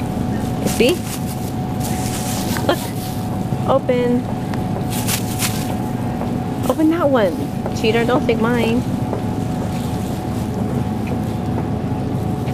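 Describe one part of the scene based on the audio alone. A plastic bag crinkles in small hands.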